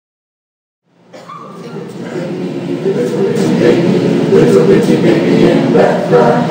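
A choir of men and women sings together in a room, growing louder.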